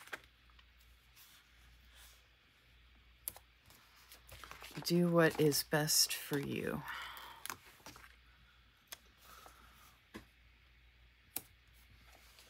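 Fingers tap and press stickers onto paper.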